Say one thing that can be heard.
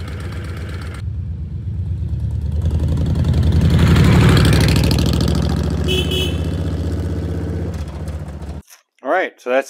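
A motorcycle rides past outdoors, its engine swelling loudly and then fading away.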